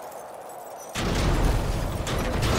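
A car crashes down onto the ground in a video game.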